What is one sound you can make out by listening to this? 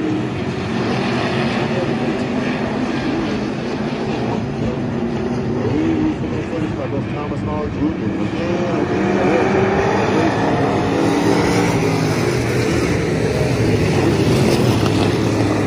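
Race car engines roar loudly around a dirt track, outdoors.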